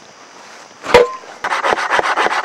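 A blade cuts through a branch with quick strokes.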